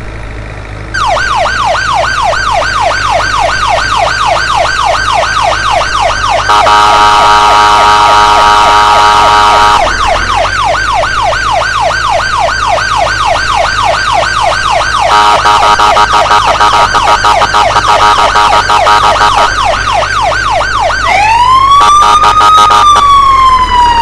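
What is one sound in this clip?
A siren wails loudly in a rapid, rising and falling pattern.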